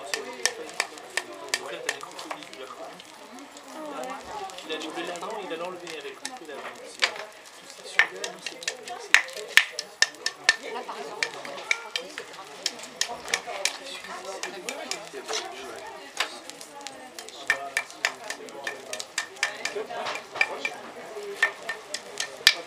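A small hammer taps and clinks sharply on metal, over and over.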